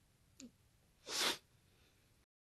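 A young man exhales sharply close to the microphone.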